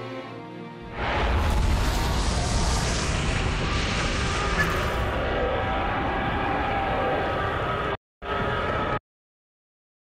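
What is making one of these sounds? Spacecraft engines roar loudly.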